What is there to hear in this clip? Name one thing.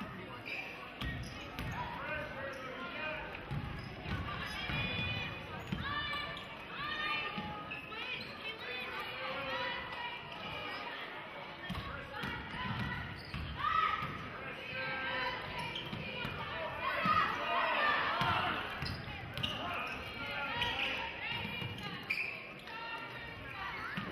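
A basketball bounces on the court with dull thumps.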